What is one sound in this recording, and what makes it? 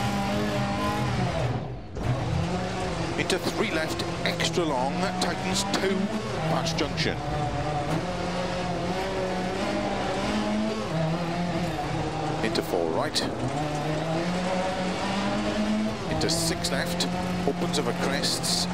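A rally car's engine revs hard and shifts through the gears.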